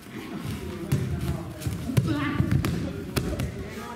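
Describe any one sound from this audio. A body thuds heavily onto a mat.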